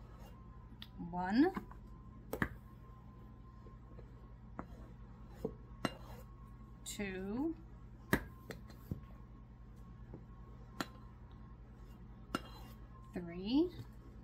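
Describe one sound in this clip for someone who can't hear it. Rubber squeaks sharply as a soft bowl is squeezed.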